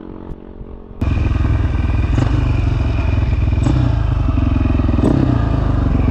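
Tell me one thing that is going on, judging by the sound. A motorcycle engine roars loudly up close as the bike rides along.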